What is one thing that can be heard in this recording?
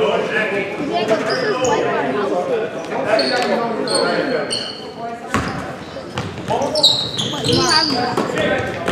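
Spectators talk and chatter in a large echoing gym.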